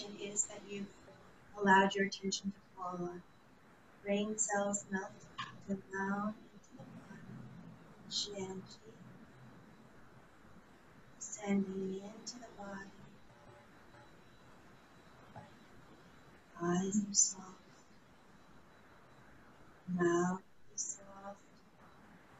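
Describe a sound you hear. An older woman speaks calmly through an online call, in short bursts.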